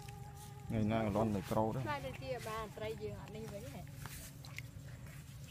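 Hands splash in shallow muddy water.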